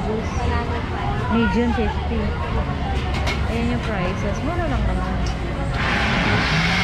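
Men and women chatter nearby amid a bustling crowd.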